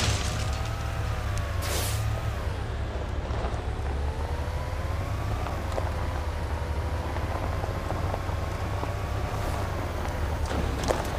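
A car engine hums steadily, rising and falling in pitch as the car speeds up and slows down.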